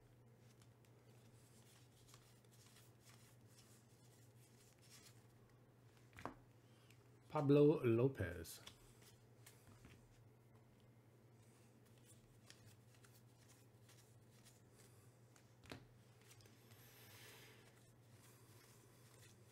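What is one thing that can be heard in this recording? Trading cards rustle and flick softly as a hand shuffles through them.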